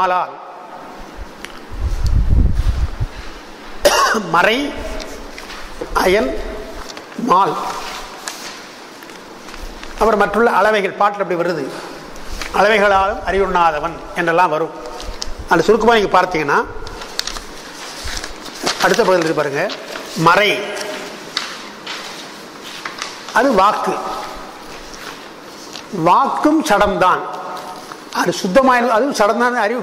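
An elderly man speaks slowly and deliberately into a microphone, in phrases with pauses.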